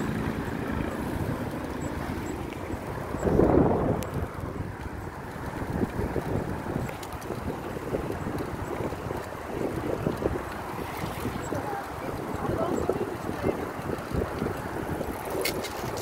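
Bicycle tyres roll over smooth pavement.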